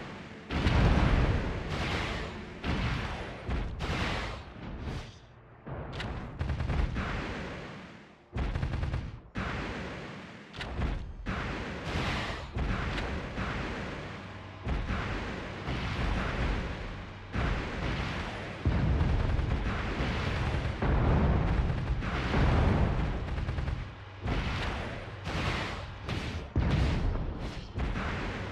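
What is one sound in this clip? Game explosions boom again and again.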